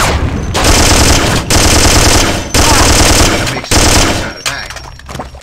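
A rifle fires rapid bursts of loud gunshots.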